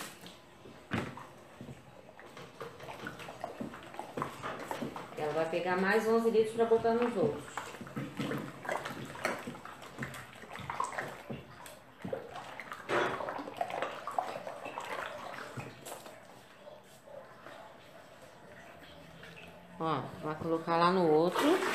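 A wooden stick stirs and sloshes water in a tub.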